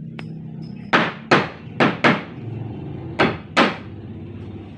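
Sharp knocks ring out on wood close by.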